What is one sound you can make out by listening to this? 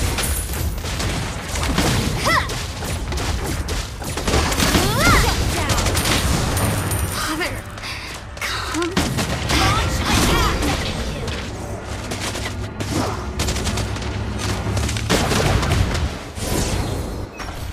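Game spell effects and hits crackle and whoosh in quick bursts.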